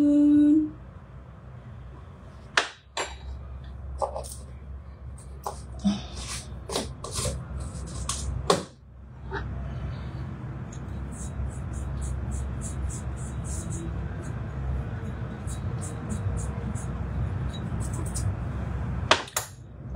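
A metal spoon clinks against a metal jug.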